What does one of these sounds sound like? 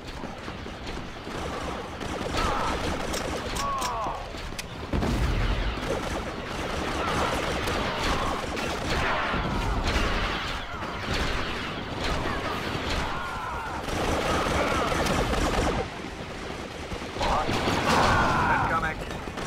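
Blaster guns fire in rapid bursts.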